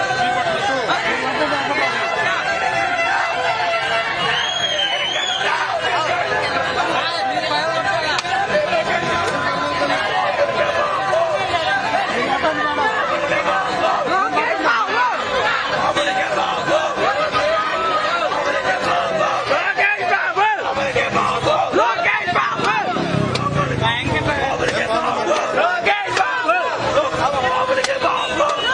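A dense crowd of men and women chatters and shouts close by outdoors.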